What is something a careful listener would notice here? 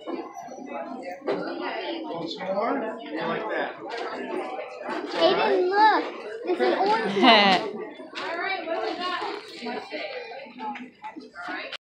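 A low murmur of voices fills a busy indoor space.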